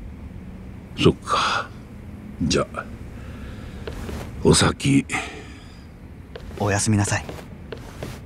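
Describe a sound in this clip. A young man answers calmly.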